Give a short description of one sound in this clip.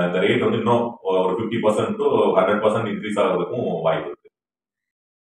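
A man speaks calmly and clearly into a close microphone.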